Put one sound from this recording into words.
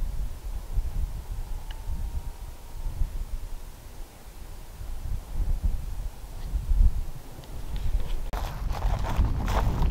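Wind blows across open grassland, buffeting the microphone.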